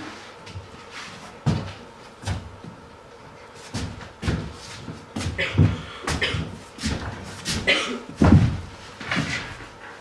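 A person scuffles and crawls across the floor.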